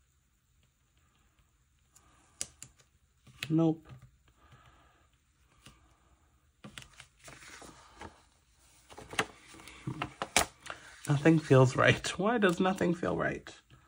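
A sticker peels off a backing sheet.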